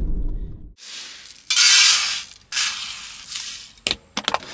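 Dry rice pours and rattles into a metal tray.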